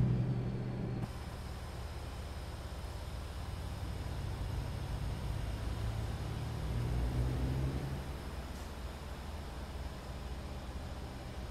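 A truck engine rumbles as a heavy truck pulls slowly away.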